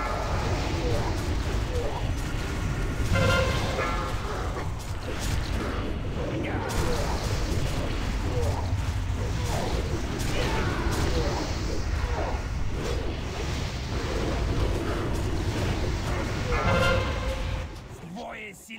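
Weapons clash and strike in a fight.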